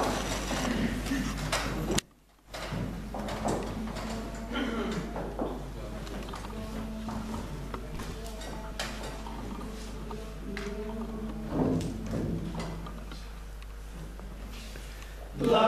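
A choir of men sings together in a large echoing hall.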